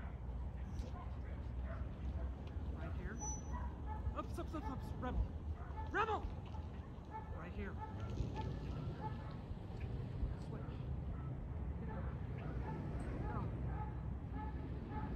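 A dog handler calls out commands to a dog at a distance.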